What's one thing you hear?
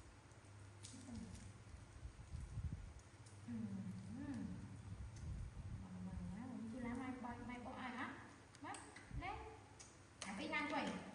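A woman speaks softly and calmly close by.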